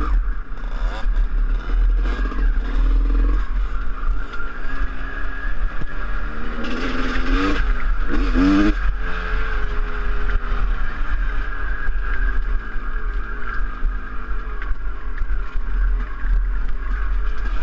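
Wind buffets loudly against a rider's helmet.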